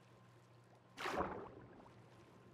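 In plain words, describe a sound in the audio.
Water splashes briefly.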